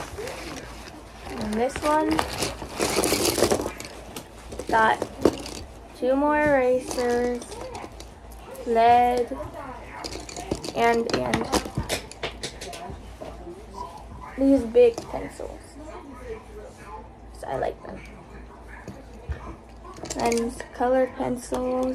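Plastic pens and markers clatter and click against one another.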